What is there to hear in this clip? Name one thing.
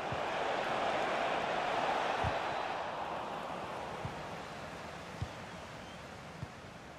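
A football is kicked with dull thumps.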